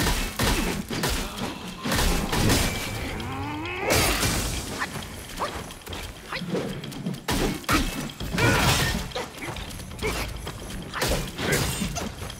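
Fire crackles and whooshes in bursts.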